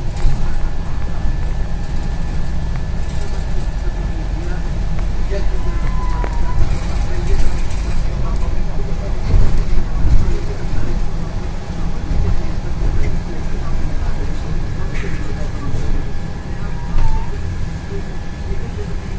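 A bus engine rumbles low and steady while driving.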